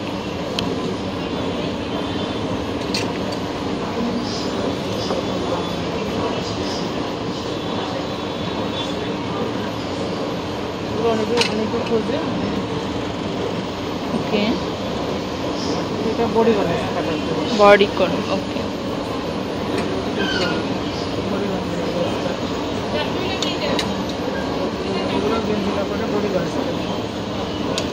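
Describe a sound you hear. A woman talks steadily and close by.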